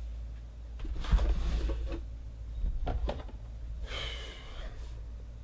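Metal case latches click.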